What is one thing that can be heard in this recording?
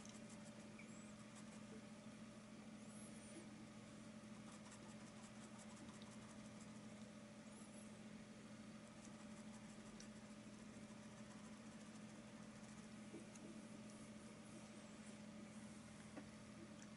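A computer hums steadily nearby.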